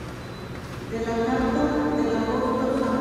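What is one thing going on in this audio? A woman sings through a loudspeaker in a large echoing hall.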